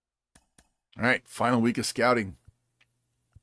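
A middle-aged man speaks briefly and clearly into a close microphone.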